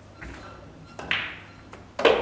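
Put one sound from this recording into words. A cue strikes a pool ball sharply.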